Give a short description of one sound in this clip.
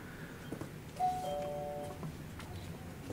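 A doorbell chimes.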